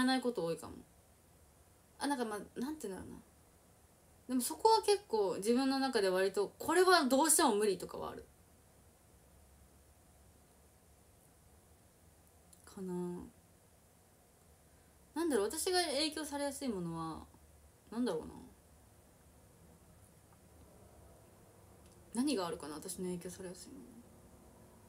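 A young woman speaks calmly and close to a microphone, in short bursts with pauses.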